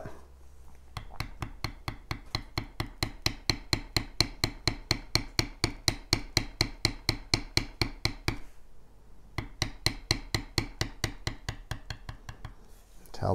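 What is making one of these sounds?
A mallet taps a metal stamping tool rapidly and steadily into leather.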